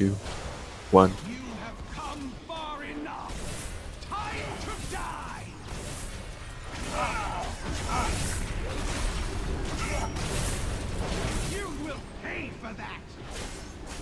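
Magic spells crackle and burst in a fierce battle.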